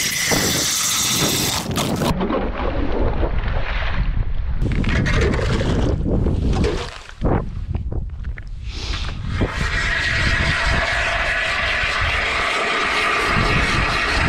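A hand auger grinds and scrapes as it drills into ice.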